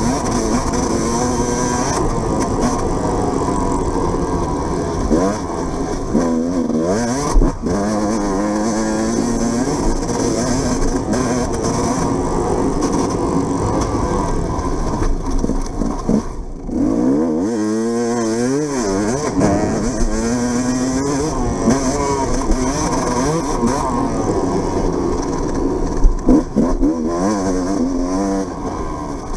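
A motorbike engine revs loudly, rising and falling in pitch.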